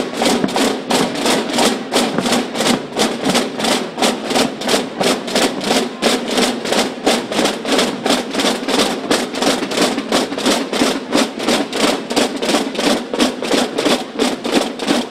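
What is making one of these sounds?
Cymbals crash in time with the drums.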